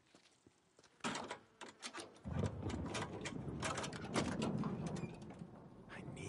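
A car trunk is unlocked and swings open with a clunk.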